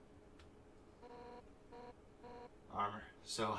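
Short electronic beeps chirp in quick bursts.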